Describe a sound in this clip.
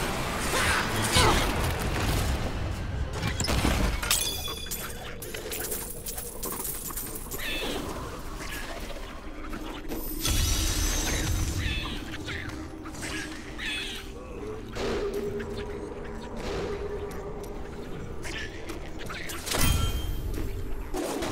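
Blows, spell blasts and crackling effects clash in a fight.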